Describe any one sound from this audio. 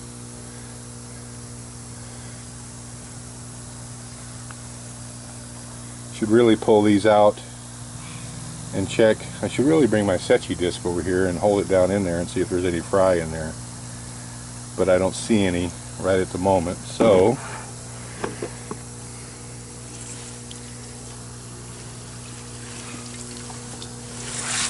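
Water bubbles and fizzes softly at the surface.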